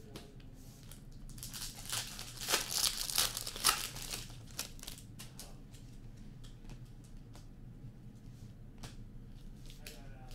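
Glossy trading cards rustle and snap as they are flicked through by hand.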